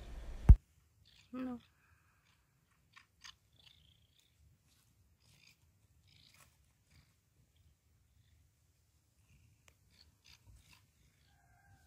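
A cat nibbles and chews softly on a plant stem.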